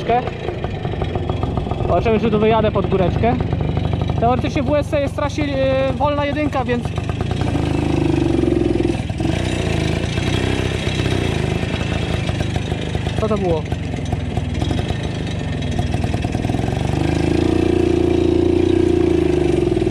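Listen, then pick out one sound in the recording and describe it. A small motorbike engine putters close by and revs up and down.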